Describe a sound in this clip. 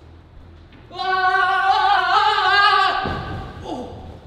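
A young man yells while jumping.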